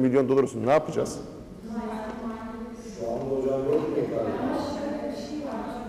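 A man speaks calmly to a room, slightly echoing.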